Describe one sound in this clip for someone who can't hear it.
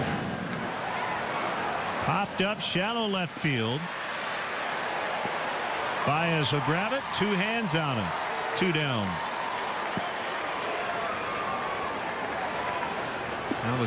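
A crowd murmurs steadily in a large outdoor stadium.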